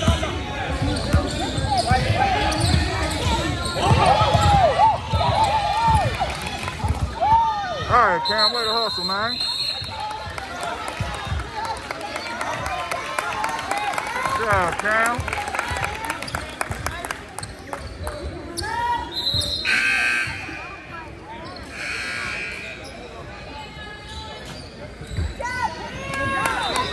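A crowd of spectators cheers and chatters in a large echoing gym.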